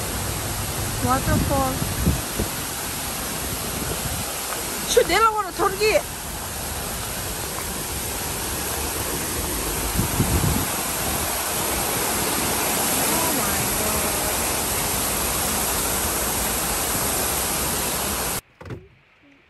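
Water pours steadily down a stone wall in a rushing cascade.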